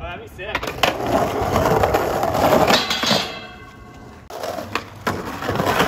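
A skateboard deck clacks against the ground.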